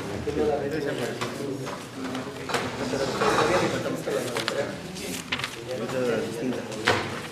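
Several men talk nearby in a small room.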